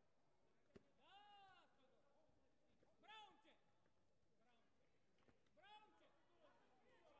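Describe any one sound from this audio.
Martial arts fighters shout sharply.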